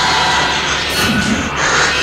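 A young man shouts in fear.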